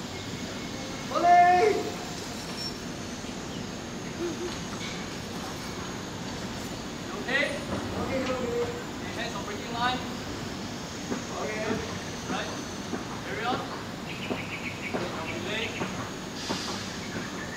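A man calls out from a distance outdoors.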